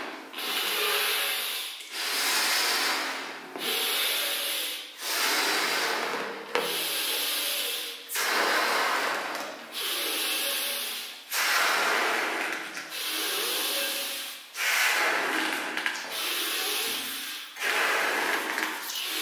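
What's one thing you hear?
A man blows hard into a balloon in long, repeated breaths, close by.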